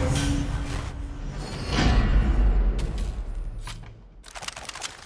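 A loud booming game sound plays and fades.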